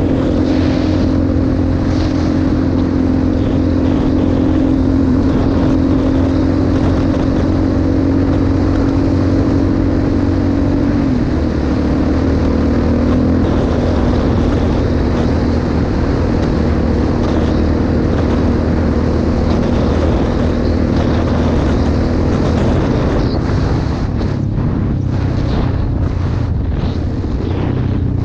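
A quad bike engine hums steadily up close, its pitch shifting as it changes speed.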